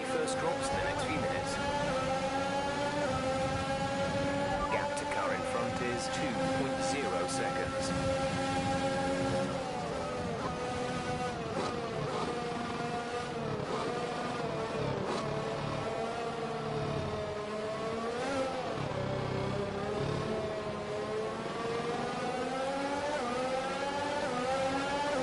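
A racing car engine screams at high revs, drops in pitch as it slows, then climbs again.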